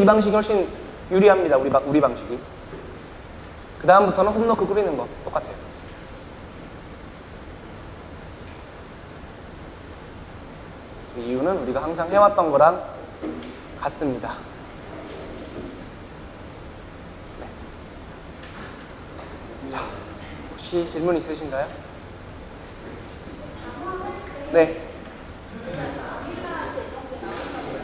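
A young man speaks calmly through a microphone, in short bursts with pauses, in an echoing room.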